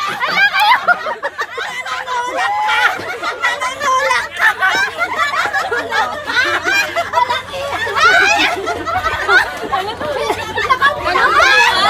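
Several young women laugh and shriek loudly nearby.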